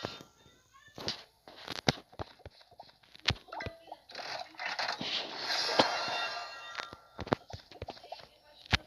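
Game interface sounds click and chime as menus open and close.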